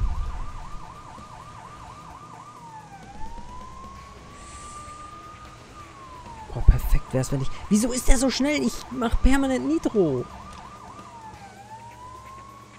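A police siren wails steadily.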